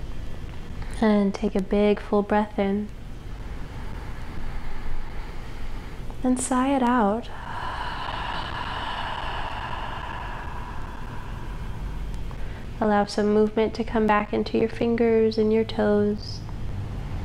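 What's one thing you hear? A woman speaks slowly and calmly, close by.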